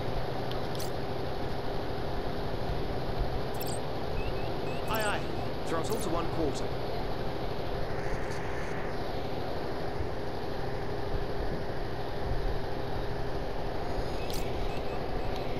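Electronic chirps and beeps sound as control buttons are pressed.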